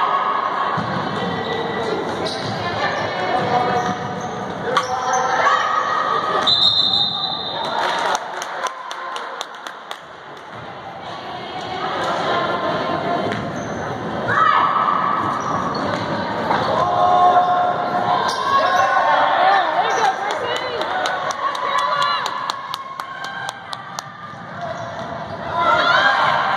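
A crowd of spectators talks and cheers in an echoing gym.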